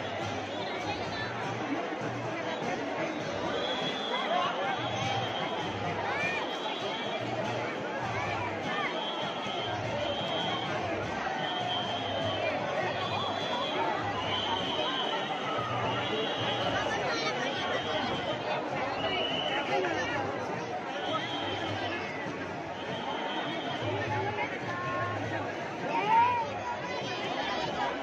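A large crowd chatters and murmurs all around outdoors.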